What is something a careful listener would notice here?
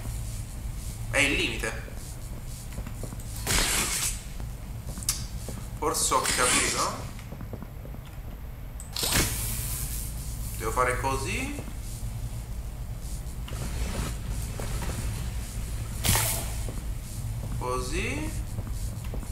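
A young man speaks into a close microphone in short bursts.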